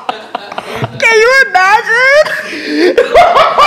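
A young woman shrieks with high laughter.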